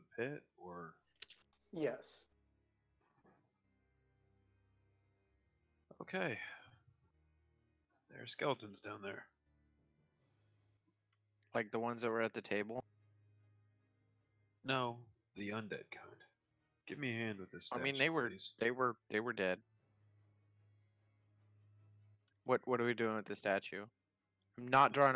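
A man talks calmly over an online call, in short bursts with pauses.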